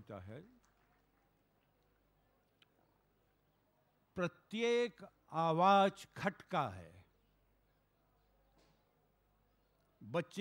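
A man speaks slowly through a microphone and loudspeakers, with long pauses.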